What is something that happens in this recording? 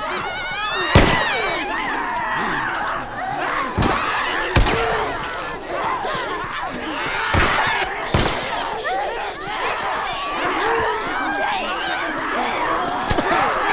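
Creatures shriek and snarl nearby.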